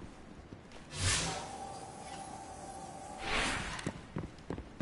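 A bright whooshing tone swells and fades away.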